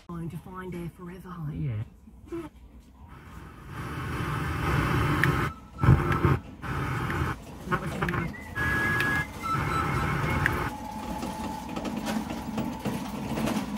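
A car stereo plays audio that changes abruptly as stations switch.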